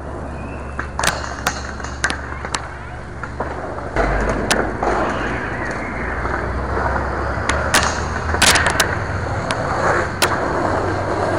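A skateboard clacks and scrapes against a metal rail.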